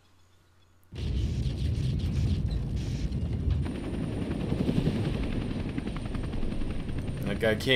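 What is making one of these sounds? A helicopter's rotor thumps and roars overhead.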